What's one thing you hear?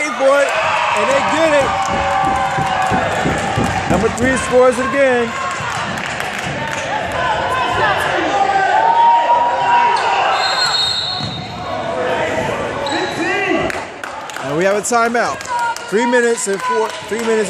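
Spectators cheer and shout loudly in an echoing gym.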